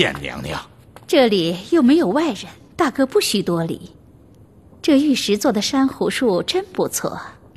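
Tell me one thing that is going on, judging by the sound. A woman speaks calmly and sweetly through a microphone.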